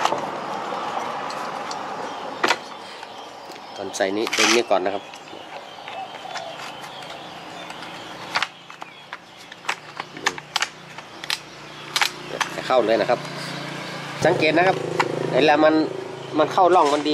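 Hard plastic parts click and knock together as a cover is fitted.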